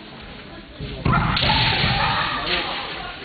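Two fighters shout loud, sharp cries that echo in a large hall.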